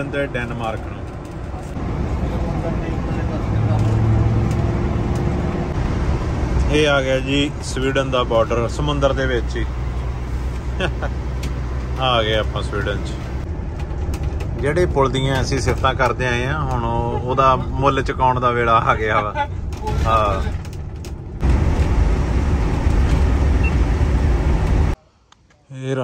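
A vehicle's engine and tyres rumble steadily on a road.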